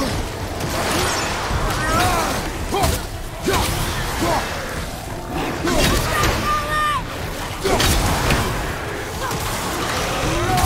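Blades clash and strike with heavy impacts.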